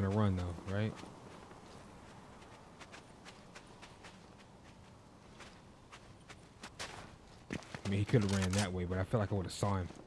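Footsteps patter quickly across sand.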